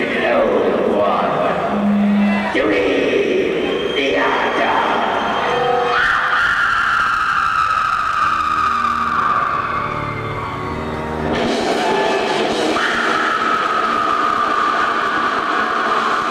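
Drums pound and cymbals crash.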